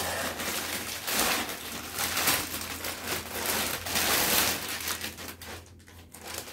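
A plastic bag rustles and crinkles as fabric is pulled from it.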